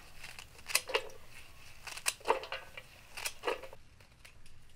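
Scissors snip through crisp green stalks.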